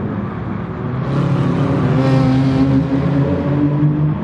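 A car whooshes past close by.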